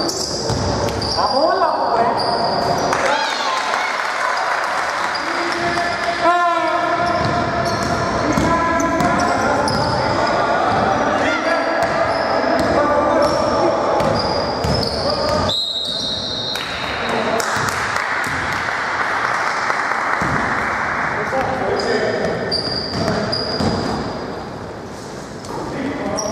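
Men shout to each other in a large echoing hall.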